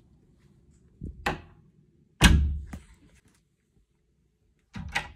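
A door handle clicks and a door swings open.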